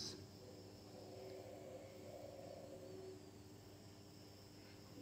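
A ceiling fan hums and whirs steadily.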